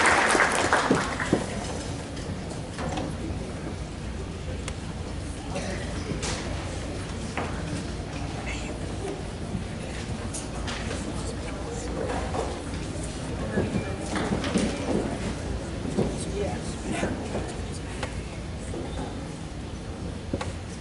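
A crowd murmurs quietly in a large hall.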